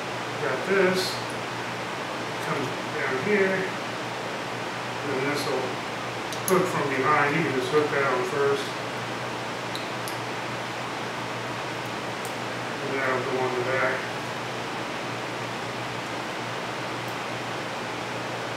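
Metal tools click against metal parts.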